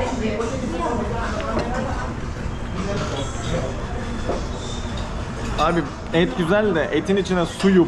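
Food sizzles on a hot plate.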